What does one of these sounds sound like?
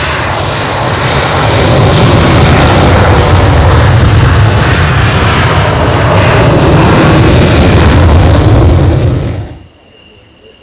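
A jet engine roars loudly nearby.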